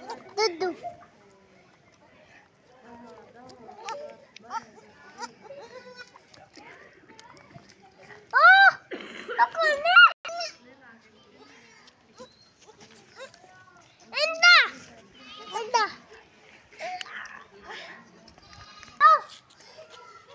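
Young goats bleat loudly in high, rising and falling cries.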